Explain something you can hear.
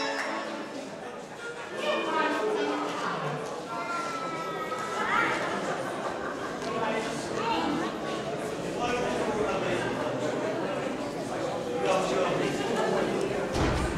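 An accordion plays a lively tune.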